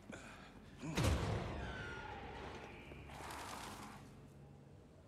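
Heavy metal doors scrape and creak open.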